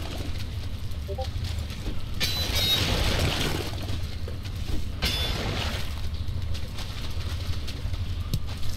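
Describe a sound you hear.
Water rumbles low and steadily all around.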